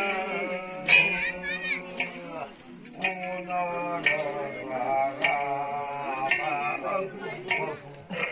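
An adult man sings loudly through a microphone, with long held notes.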